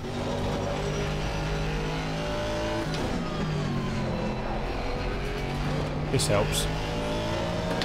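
A racing car engine drones steadily, shifting pitch as it changes gear.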